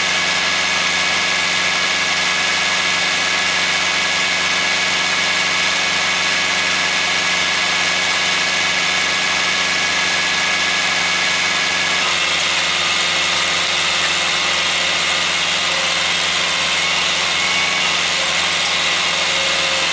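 A tractor engine idles steadily nearby.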